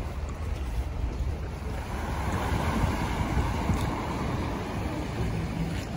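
Traffic hums along a nearby street.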